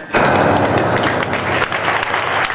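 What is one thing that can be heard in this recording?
A piano plays a loud final chord in a large room.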